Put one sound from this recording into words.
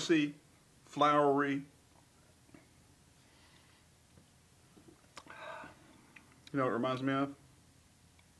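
A man speaks briefly nearby, in short bursts.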